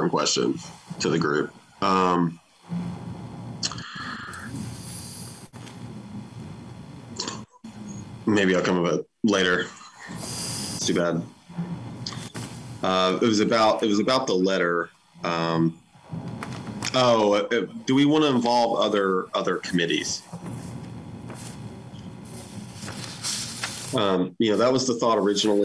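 A man speaks thoughtfully over an online call.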